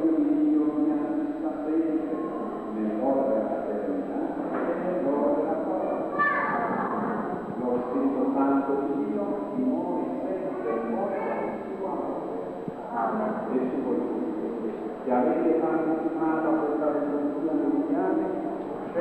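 A crowd of people sings together in a large echoing hall.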